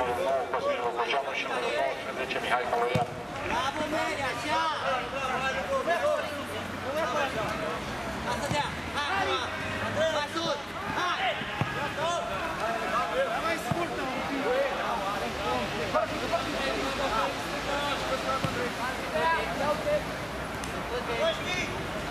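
A football thuds as a player kicks it.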